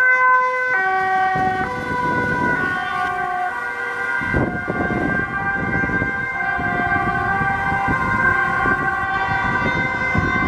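An ambulance engine rumbles as it drives past close by.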